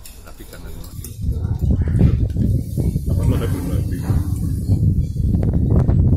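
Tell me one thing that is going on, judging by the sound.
A spoon scrapes and clinks on a plate.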